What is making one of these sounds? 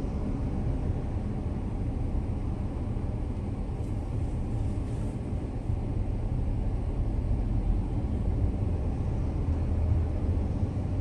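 Road traffic rumbles past nearby.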